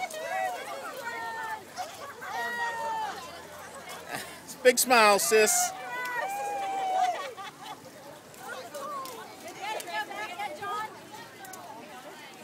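Young women talk and laugh nearby outdoors.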